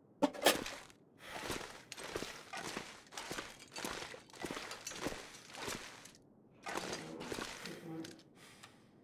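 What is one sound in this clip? Footsteps thud on wooden boards at a steady walking pace.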